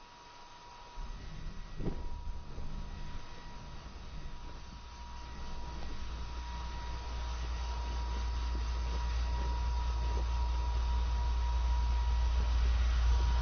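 A hair dryer blows with a steady whirring hum.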